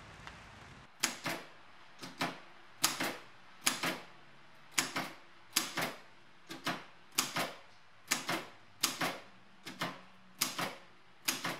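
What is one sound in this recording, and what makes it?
Typewriter keys strike the paper in quick, sharp clacks.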